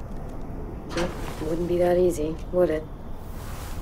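A young woman speaks softly to herself, close by.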